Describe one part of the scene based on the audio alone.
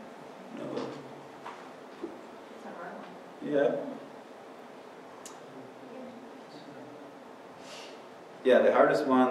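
A man speaks calmly in a large room, with pauses between phrases.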